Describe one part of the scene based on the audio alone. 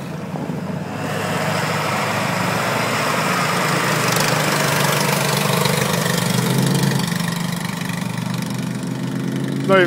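A truck drives off down a snowy road, its engine growing louder.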